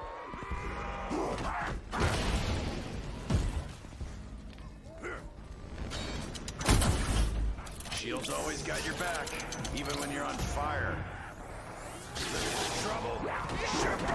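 Monsters snarl and growl close by.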